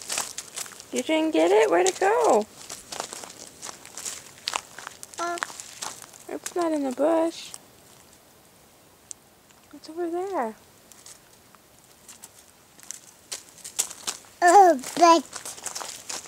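A toddler girl babbles and squeals close by.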